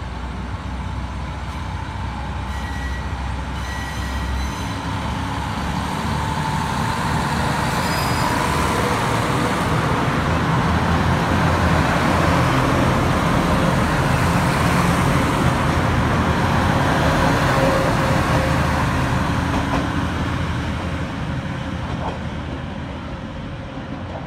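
A diesel train rumbles past close by, its wheels clattering over the rails.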